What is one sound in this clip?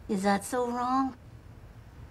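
An older woman speaks softly and tenderly close by.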